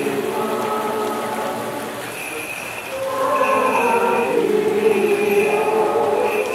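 A crowd of men and women sings together slowly, echoing in a large room.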